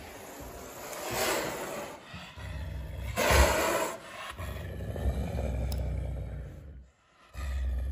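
A wild cat hisses loudly.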